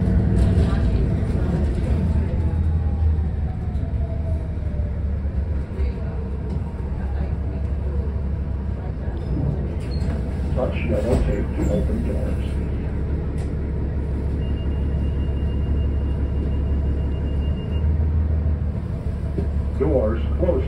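A vehicle engine rumbles steadily from inside.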